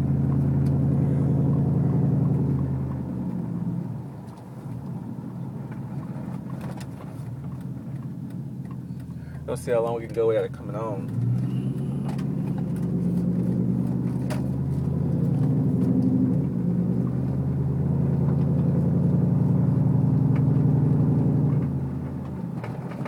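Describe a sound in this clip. A truck engine revs up and down inside the cab, rising and falling in pitch.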